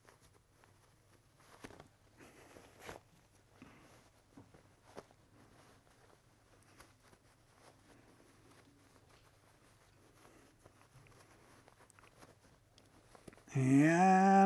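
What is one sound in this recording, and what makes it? Fabric rustles and crinkles as it is handled.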